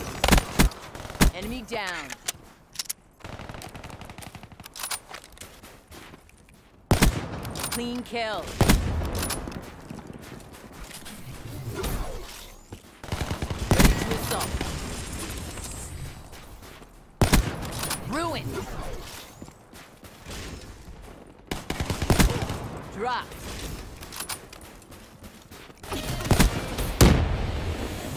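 A sniper rifle fires single shots.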